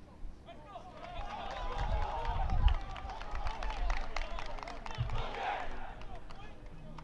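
A group of young players cheers and shouts in the distance outdoors.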